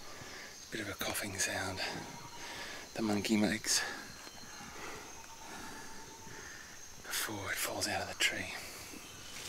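A middle-aged man speaks quietly and calmly, close by.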